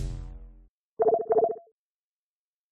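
An electronic tone beeps briefly.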